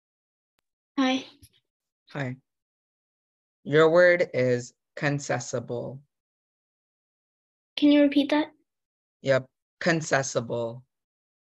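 A young boy speaks over an online call.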